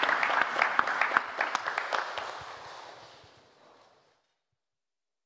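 An audience applauds in a large hall, and the clapping dies away.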